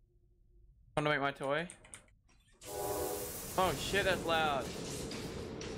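A young man speaks into a headset microphone.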